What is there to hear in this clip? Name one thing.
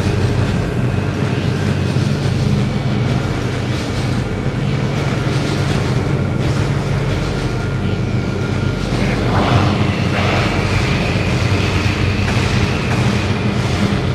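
A metal ball rolls and rumbles steadily across a hard floor.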